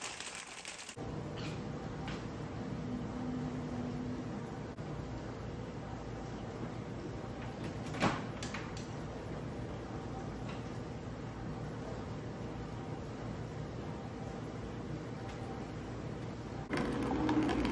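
A coffee maker hums steadily.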